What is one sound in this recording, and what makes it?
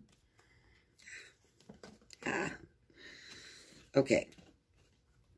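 Paper cards rustle in a woman's hands.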